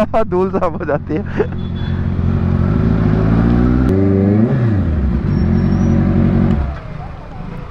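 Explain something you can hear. A motorcycle engine rumbles close by, revs briefly, then shuts off.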